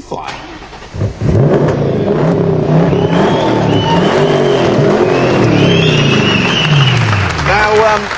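A car engine starts and revs loudly, roaring and rising and falling.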